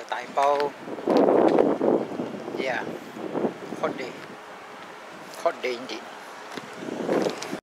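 A young man talks casually, close to the microphone, outdoors.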